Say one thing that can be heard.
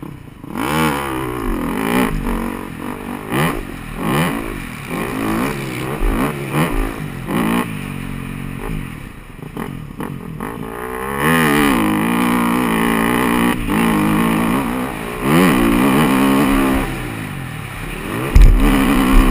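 A dirt bike engine revs hard, rising and falling as the rider shifts gears.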